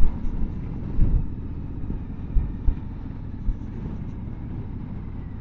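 A motorcycle engine hums steadily nearby.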